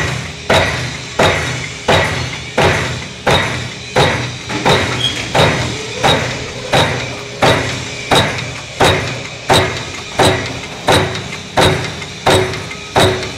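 A punch press thumps down in a steady, fast rhythm, punching metal sheet with sharp ringing bangs.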